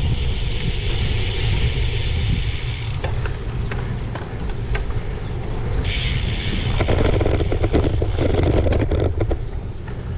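A bicycle's tyres hum on a paved road.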